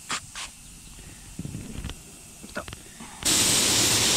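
Liquid pours into a plastic bucket.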